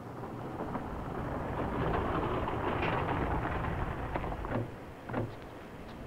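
A car engine runs as the car pulls up.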